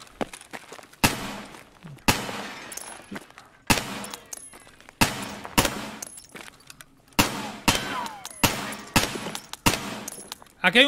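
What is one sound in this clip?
Gunshots bang sharply one after another, with a short ringing tail.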